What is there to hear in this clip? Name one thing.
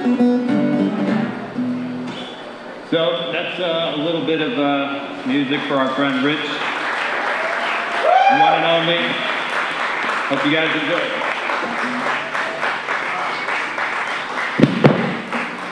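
An acoustic guitar is strummed through loudspeakers.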